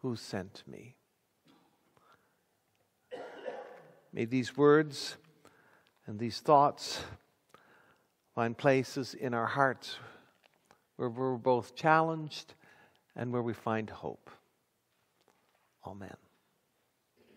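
A middle-aged man speaks steadily through a microphone.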